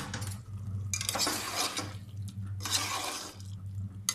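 A spoon scrapes and stirs inside a metal pot.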